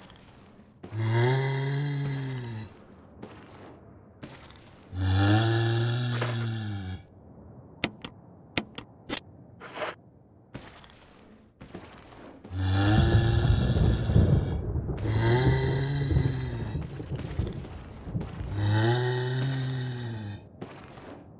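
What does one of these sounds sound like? A zombie moans in long, low groans.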